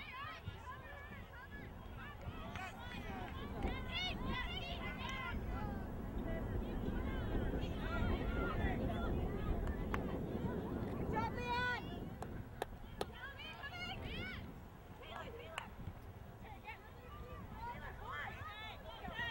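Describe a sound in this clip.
Distant spectators shout and cheer outdoors.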